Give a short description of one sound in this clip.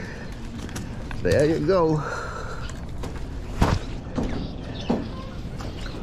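A small fish flaps and slaps on a wooden deck.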